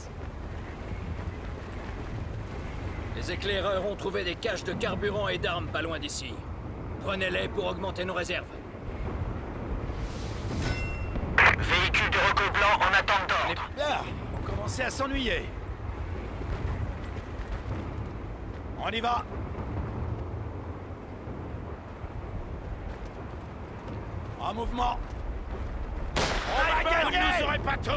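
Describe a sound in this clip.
A low battle rumble with distant explosions rolls on steadily.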